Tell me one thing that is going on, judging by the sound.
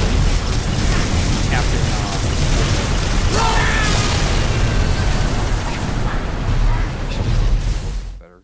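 A large hovering craft's engines roar with a deep, steady rumble.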